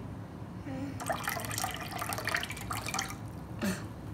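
Water pours into a bowl.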